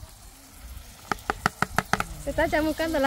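A plastic plate taps sharply against a pot several times.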